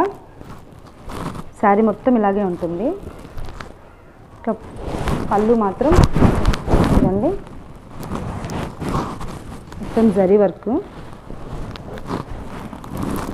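Silk fabric rustles as it is unfolded and handled.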